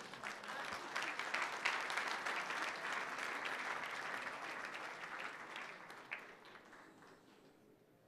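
An audience claps loudly in a large hall, then fades.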